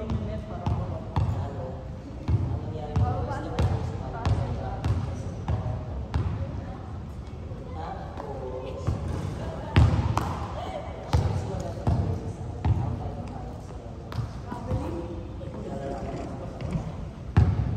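A ball bounces on a wooden floor, echoing through a large hall.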